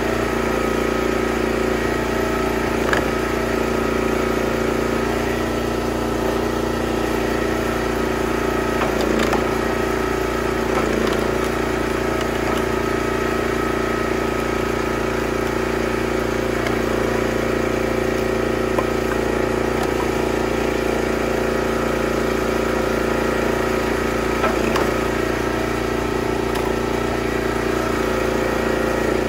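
A log splitter's engine runs steadily up close.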